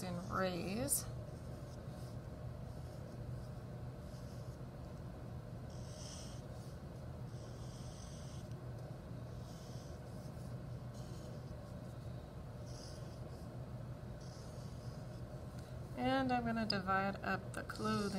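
A felt marker squeaks and scratches across paper in short strokes.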